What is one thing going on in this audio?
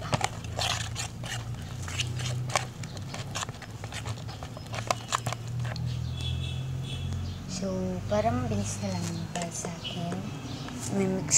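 Wet foam squelches and crackles as hands squeeze it.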